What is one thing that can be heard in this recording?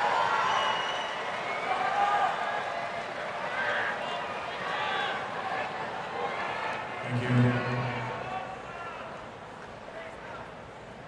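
A large crowd murmurs and chatters in an open stadium.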